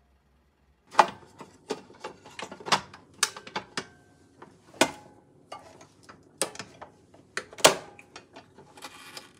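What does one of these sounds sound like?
A metal waffle iron lid clanks and clicks as it opens and shuts.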